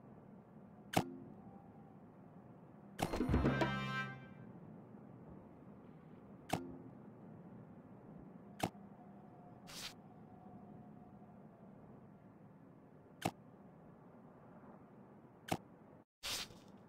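Short interface clicks and chimes sound now and then.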